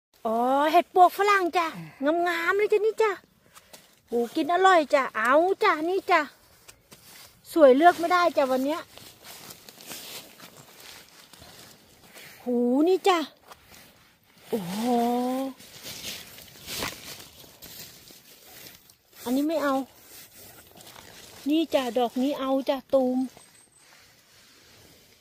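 Dry leaves rustle as a gloved hand brushes through them.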